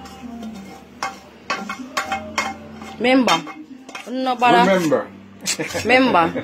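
A metal spoon scrapes food out of a metal pan.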